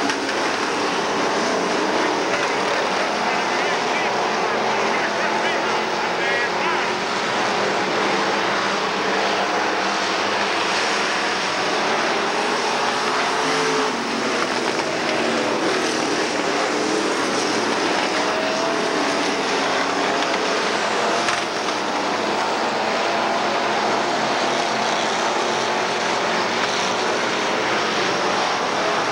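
Race car engines roar steadily around a dirt track.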